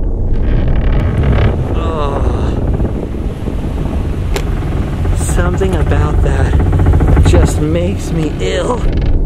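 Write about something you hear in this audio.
Car tyres roll and clatter over wooden bridge planks.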